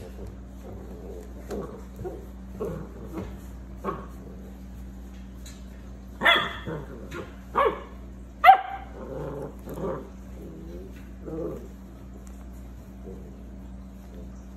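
Puppies rustle on a blanket.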